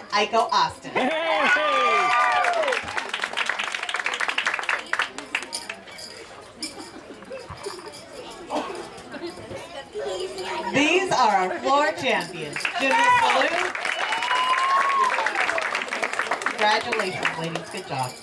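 An audience applauds and claps steadily.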